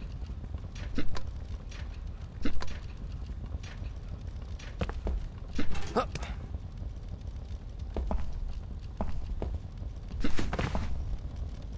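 Footsteps and landings thud on stone.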